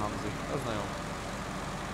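A man talks calmly into a nearby microphone.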